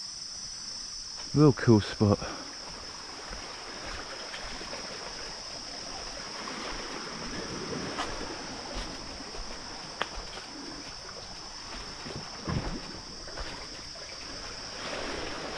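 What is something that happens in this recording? Small waves lap gently against a rocky shore.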